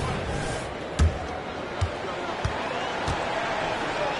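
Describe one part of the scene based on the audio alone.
A basketball bounces on a hardwood floor several times.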